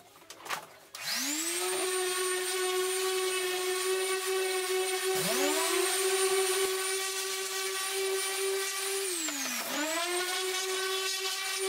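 An electric orbital sander whirs loudly, starting and stopping with a rising whine.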